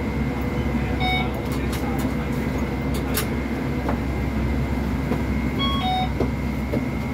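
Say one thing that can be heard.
A card reader beeps sharply as passengers tap their cards.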